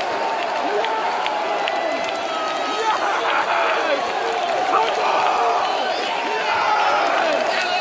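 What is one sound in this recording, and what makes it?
A large crowd of men sings and chants loudly in a stadium.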